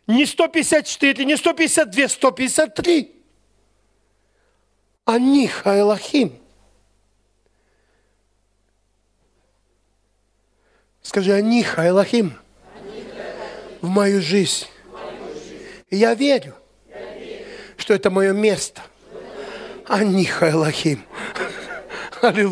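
A middle-aged man speaks loudly and with animation, with pauses.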